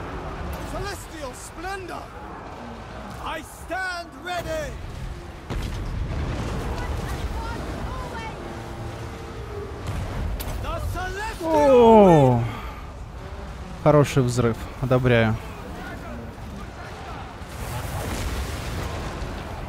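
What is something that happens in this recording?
Swords clash and soldiers shout in a large battle.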